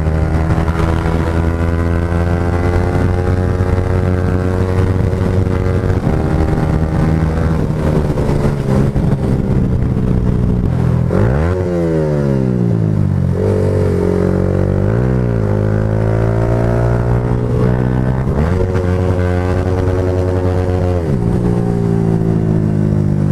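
A motorcycle engine drones loudly, its pitch dropping and climbing again as it shifts gears.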